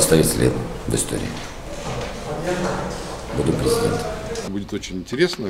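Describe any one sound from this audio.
A man speaks calmly and close by.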